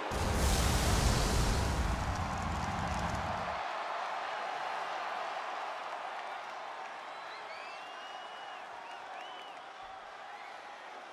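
A large crowd cheers loudly in a big echoing arena.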